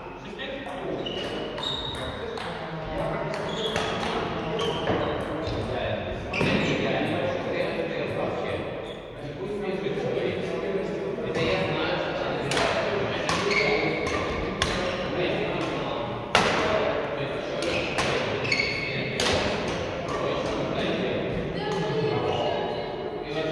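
Badminton rackets strike a shuttlecock with sharp pops, echoing in a large hall.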